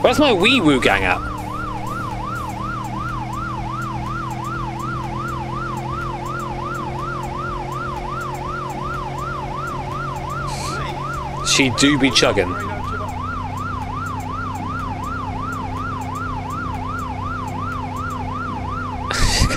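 A police siren wails in a steady rapid cycle.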